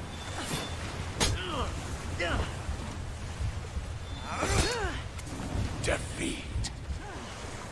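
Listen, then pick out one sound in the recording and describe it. Metal blades clash and strike in a sword fight.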